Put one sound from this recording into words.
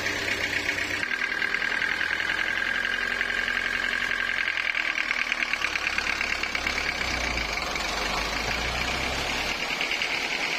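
A diesel engine runs with a steady rumble.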